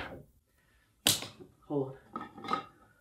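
A pen clatters against a plastic holder.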